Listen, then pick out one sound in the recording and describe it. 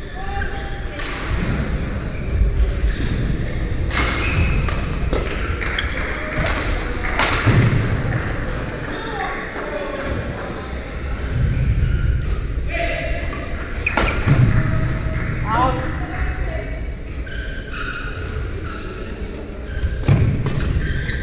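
Badminton rackets sharply strike a shuttlecock back and forth in an echoing hall.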